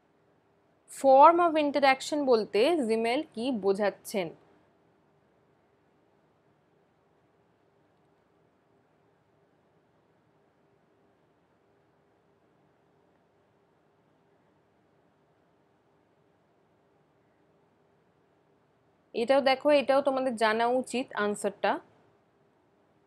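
A young woman speaks calmly into a close microphone, as if teaching, with long pauses.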